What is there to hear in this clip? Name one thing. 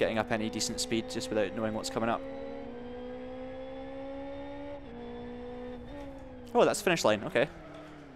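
A race car engine hums steadily and shifts pitch.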